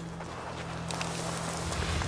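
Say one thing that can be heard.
Leafy bushes rustle as someone brushes through them.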